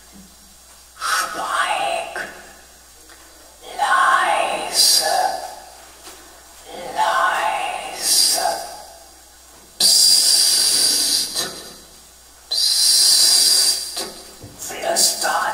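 A man plays a harmonica close to a microphone in short bursts.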